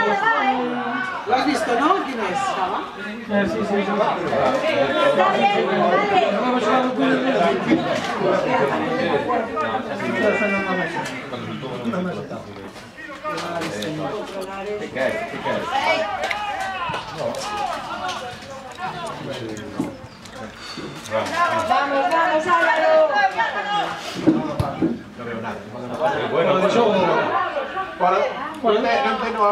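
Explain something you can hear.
Young players shout across an open field outdoors.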